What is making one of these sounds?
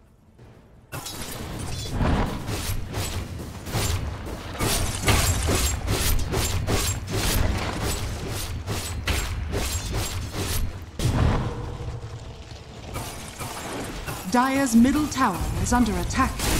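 Game spells and weapon hits clash in rapid bursts during a fight.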